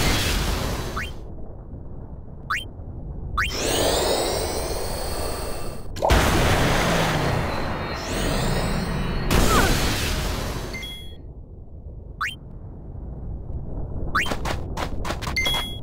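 Menu cursor blips sound in quick succession.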